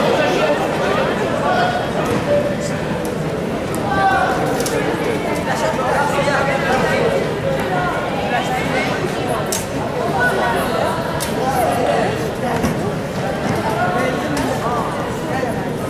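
A crowd of people chatters and murmurs in a large echoing hall.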